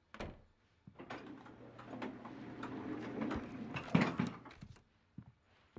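A lift door rumbles open.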